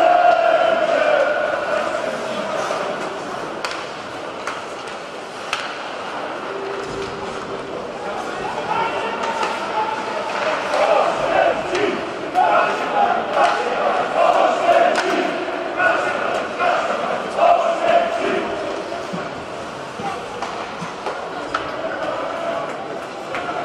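A crowd chants and cheers in a large echoing arena.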